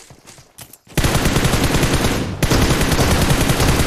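Rapid gunfire rattles loudly and without a break.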